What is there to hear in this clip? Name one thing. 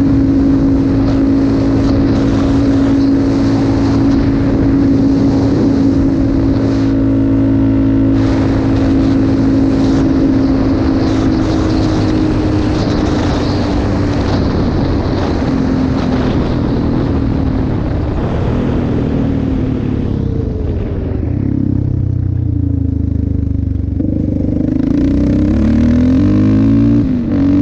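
A quad bike engine drones loudly at speed.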